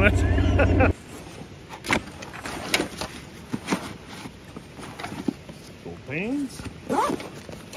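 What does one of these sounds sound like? Fabric rustles as a backpack is handled.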